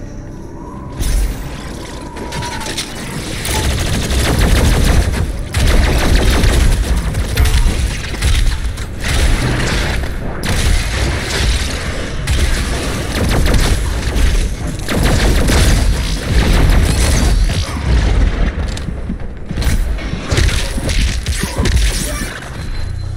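A heavy gun fires in rapid, booming bursts.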